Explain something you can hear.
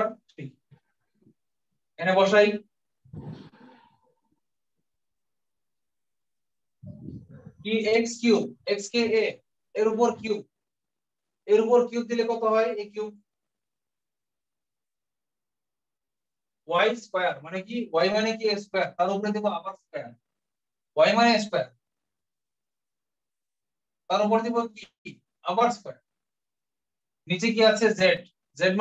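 A man speaks calmly and clearly, close by, explaining in bursts with pauses.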